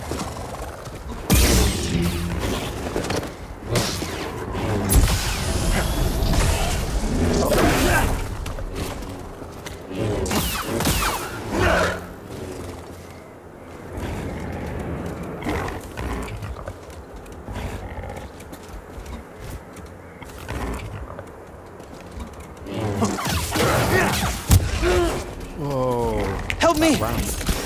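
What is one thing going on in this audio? Beasts snarl and growl while fighting.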